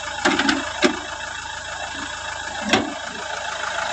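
A car bonnet is unlatched and lifted open with a click.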